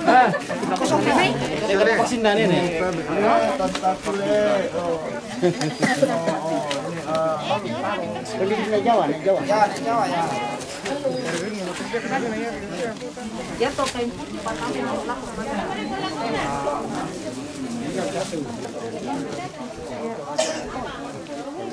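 A crowd of men and women talks and calls out all around, close by, outdoors.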